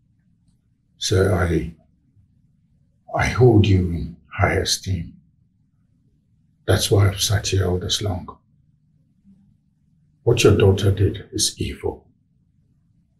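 A younger man speaks in a deep, measured voice.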